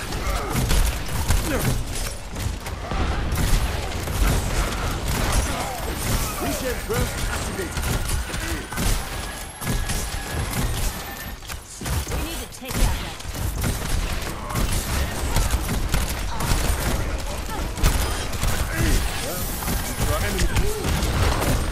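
Rapid gunfire blasts and booms repeatedly.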